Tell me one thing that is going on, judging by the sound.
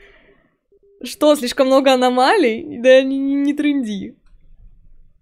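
A young woman speaks with animation into a close microphone, her voice rising and falling.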